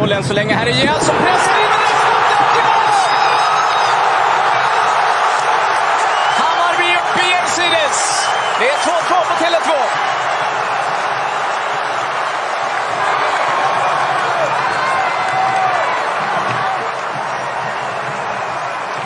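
A large stadium crowd erupts into loud, sustained cheering.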